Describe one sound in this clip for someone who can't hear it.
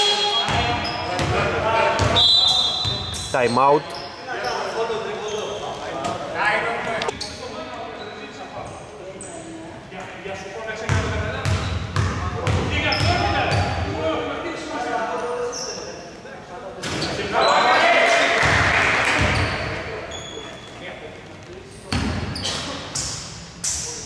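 Sneakers squeak sharply on a hardwood court, echoing in a large empty hall.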